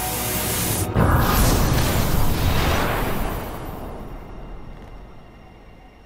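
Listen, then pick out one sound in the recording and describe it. A loud whooshing blast bursts and fades away.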